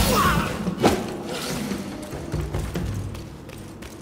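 A staff whooshes through the air.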